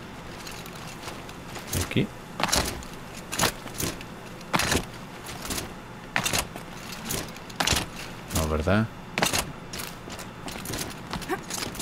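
Hands and boots knock and scrape on rock during a climb.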